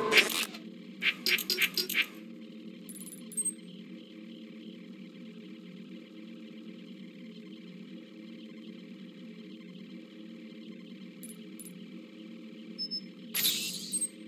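Short electronic menu beeps and clicks sound.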